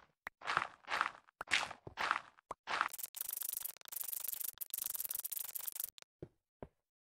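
Sand crunches in quick bursts as it is dug away.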